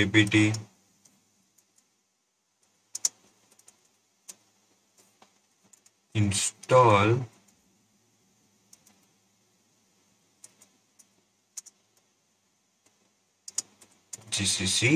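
Keyboard keys click in short bursts.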